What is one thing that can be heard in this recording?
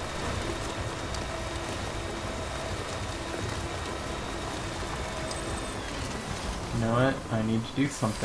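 Tyres crunch over loose gravel and rocks.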